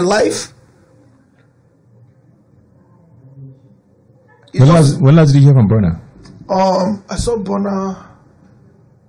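A man speaks close to a microphone in a calm conversational tone.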